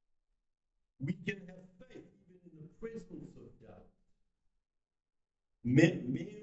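A middle-aged man speaks with animation over a microphone in an echoing hall.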